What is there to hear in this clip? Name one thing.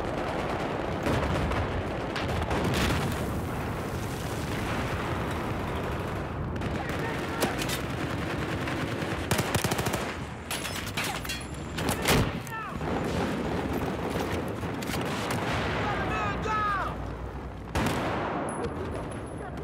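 Gunfire from an assault rifle crackles in bursts in a game.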